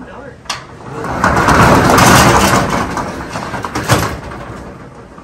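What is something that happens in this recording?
A metal roll-up door rattles loudly as it slides open.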